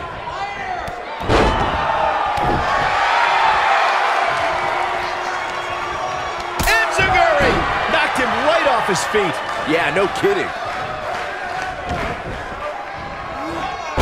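A crowd cheers and roars loudly in a large arena.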